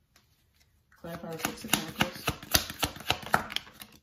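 A deck of cards is shuffled with quick riffling snaps.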